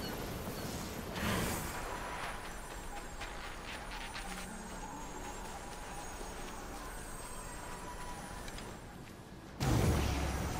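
Footsteps run over sand and grass.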